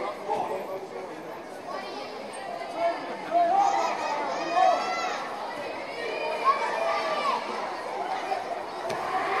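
A crowd chatters and shouts in a large echoing hall.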